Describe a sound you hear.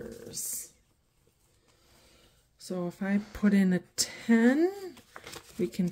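Paper bills rustle as they are counted.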